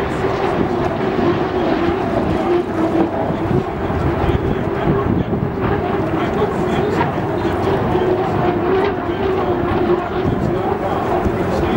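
Racing powerboat engines roar steadily across the water in the distance.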